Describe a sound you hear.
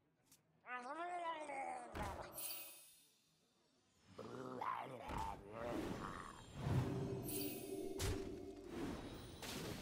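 Magical game sound effects whoosh, chime and thud.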